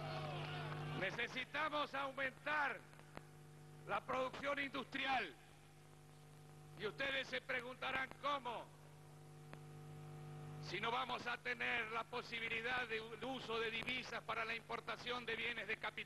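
A middle-aged man gives a speech through a loudspeaker system with a booming echo.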